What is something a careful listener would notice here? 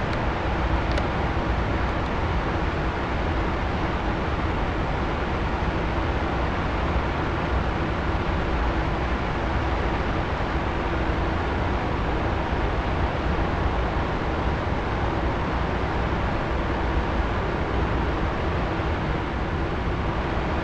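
Wind rushes past the canopy in a steady hiss.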